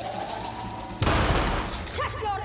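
An explosion booms and roars.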